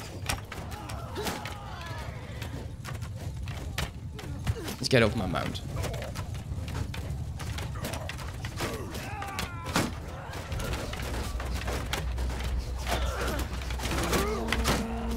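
Many men shout in battle.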